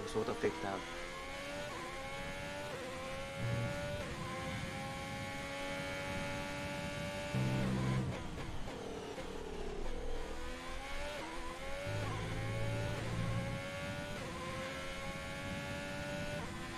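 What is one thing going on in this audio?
A racing car engine revs high and climbs through the gears, dropping in pitch as it brakes and downshifts.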